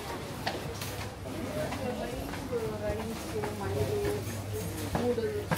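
People chatter nearby in a busy indoor crowd.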